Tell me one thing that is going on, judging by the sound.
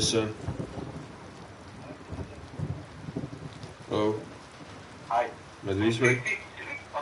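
A man talks in short bursts close to a microphone.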